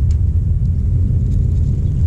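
Doves flutter their wings as one takes off.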